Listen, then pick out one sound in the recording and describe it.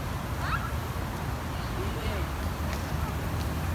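Young children squeal and call out nearby.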